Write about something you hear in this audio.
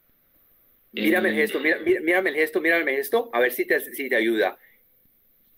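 An elderly man talks with animation over an online call.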